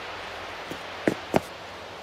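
Footsteps tap quickly across a wooden floor.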